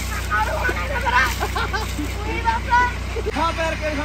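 Water splashes in a pool.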